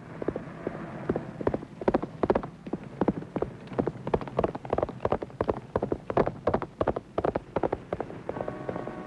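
A horse's hooves clatter quickly at a gallop.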